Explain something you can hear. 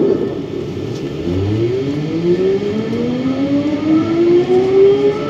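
The electric motors of a rubber-tyred automated metro whine up in pitch as the train pulls away.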